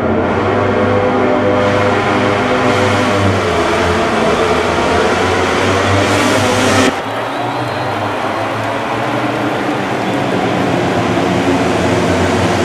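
Many motorcycle engines roar loudly together.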